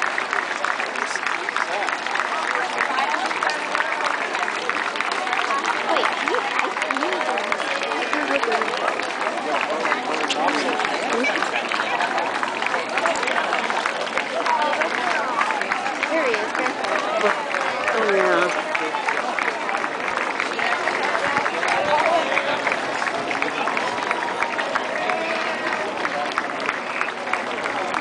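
A large outdoor crowd of men and women chatters all around.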